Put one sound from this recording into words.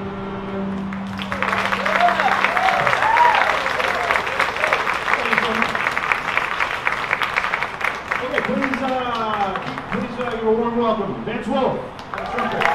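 A string quartet plays a sustained chord, then sliding, swooping notes.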